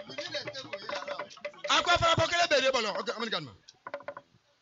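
A man speaks loudly with animation through a microphone and loudspeaker outdoors.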